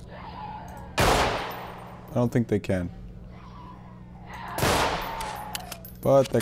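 A gun fires with a loud bang that echoes.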